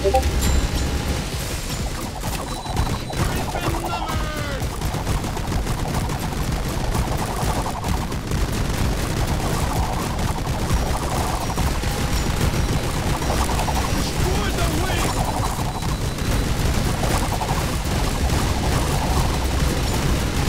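Rapid gunfire crackles and thumps without pause.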